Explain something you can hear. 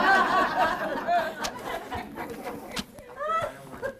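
Pages of a book rustle as they are turned.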